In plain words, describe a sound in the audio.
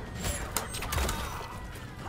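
Blood splatters with a wet squelch.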